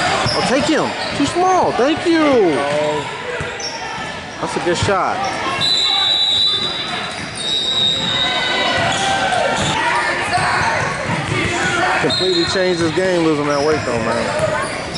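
Spectators nearby chatter and call out, young and adult voices mixed.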